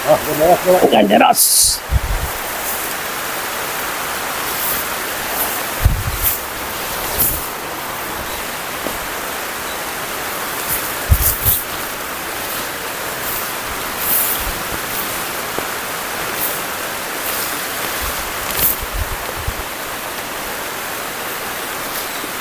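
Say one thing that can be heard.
A swollen river rushes steadily nearby.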